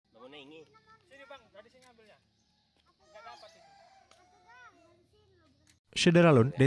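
Young children chatter softly nearby.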